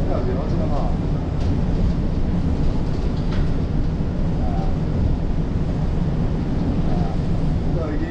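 A bus engine rumbles steadily while driving along a road.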